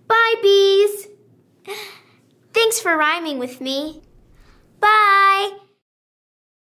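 A young girl sings in a bright, clear voice.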